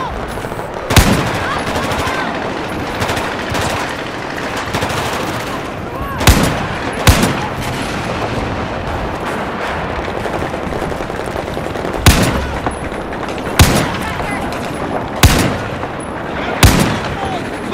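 A rifle fires loud single shots now and then.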